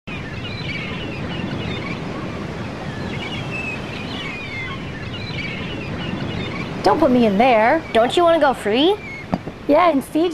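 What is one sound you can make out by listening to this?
Sea waves wash steadily.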